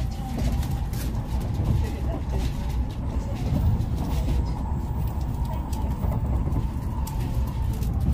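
A passing train rushes by close alongside with a loud whoosh.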